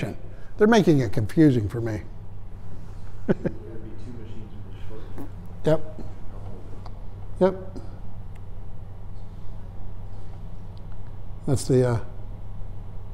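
An older man speaks calmly in short phrases in a room.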